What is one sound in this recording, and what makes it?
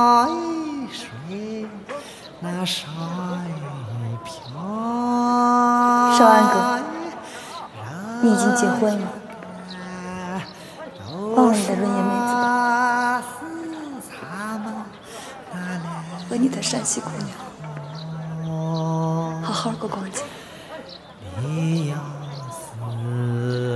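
A young woman sings softly and slowly nearby.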